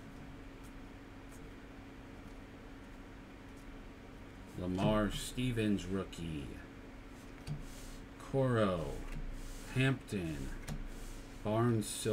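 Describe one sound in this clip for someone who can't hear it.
Trading cards rustle and slide in hands.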